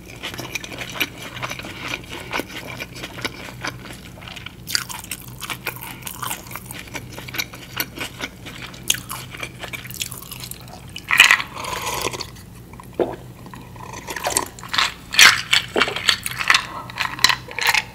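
Ice cubes clink in a glass.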